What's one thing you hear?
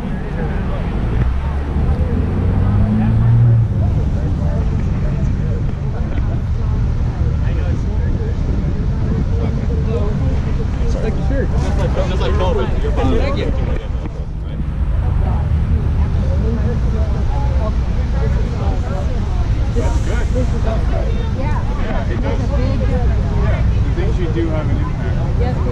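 Cars and trucks pass by steadily on a busy road outdoors.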